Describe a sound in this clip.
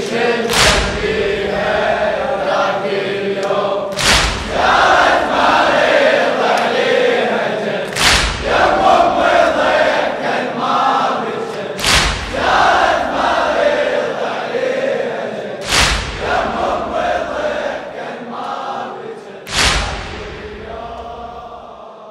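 A large crowd of men chants together in a loud echoing hall.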